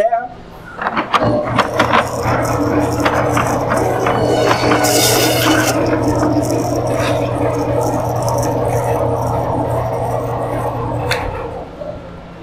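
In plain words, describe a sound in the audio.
A band saw whirs steadily as it cuts through meat and bone.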